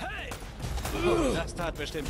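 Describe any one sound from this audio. A gun fires sharply.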